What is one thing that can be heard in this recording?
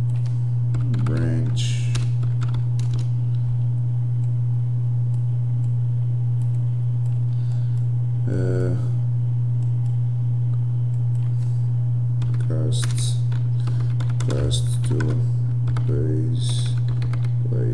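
A man talks calmly into a microphone, in short bursts with pauses.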